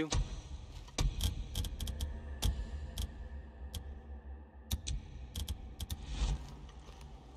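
Sharp menu clicks sound in quick bursts.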